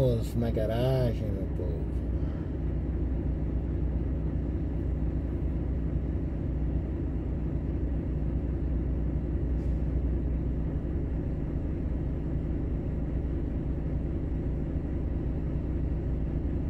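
A diesel truck engine idles with a low, steady rumble.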